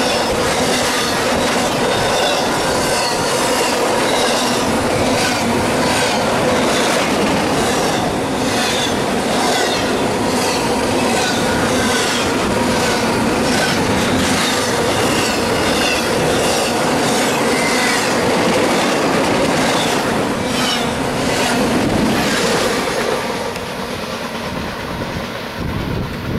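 A freight train rumbles past close by, wheels clacking and squealing on the rails.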